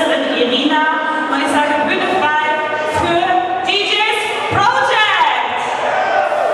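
A young woman sings into a microphone through loud speakers.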